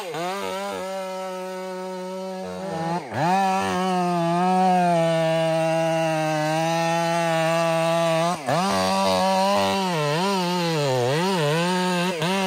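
A chainsaw engine runs loudly close by, its pitch rising and falling as it revs.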